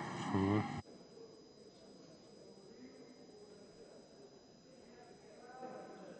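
A crowd murmurs quietly in a large hall.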